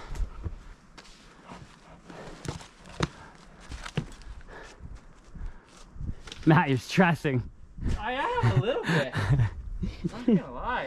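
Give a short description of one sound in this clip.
Boots scrape and knock on rock and snow.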